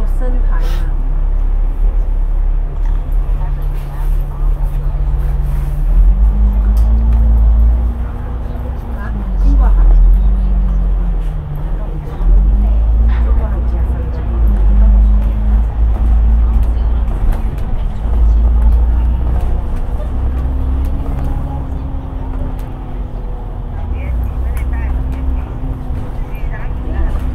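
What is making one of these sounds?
A bus engine rumbles steadily, its note rising and falling.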